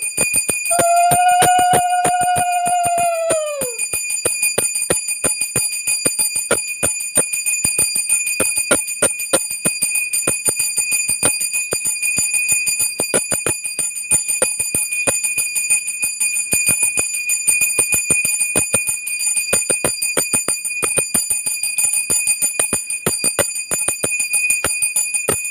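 A small hand bell rings rapidly and steadily close by.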